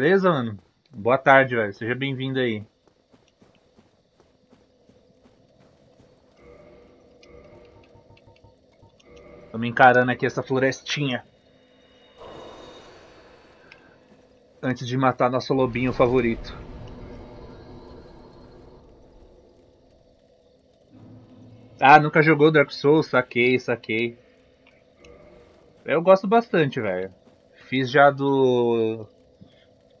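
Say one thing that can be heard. A young man talks with animation into a headset microphone, in short bursts.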